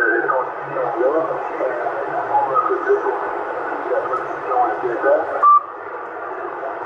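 Static hisses from a CB radio transceiver's loudspeaker.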